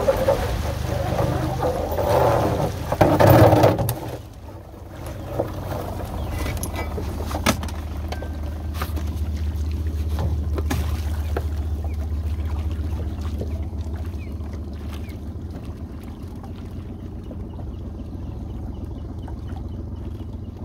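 An outboard motor hums steadily behind a small boat.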